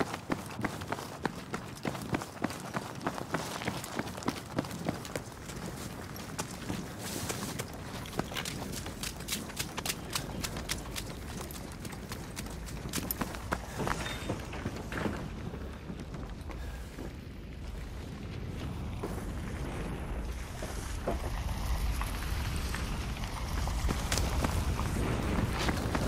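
A large fire roars.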